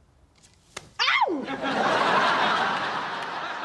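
A young woman cries out in dismay.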